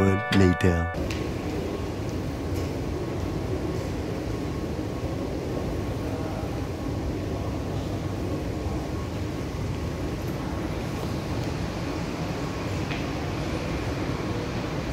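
A large hall hums with a steady low murmur.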